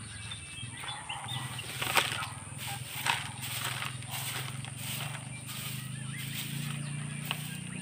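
A man sweeps the ground with a broom, the bristles scraping in short strokes.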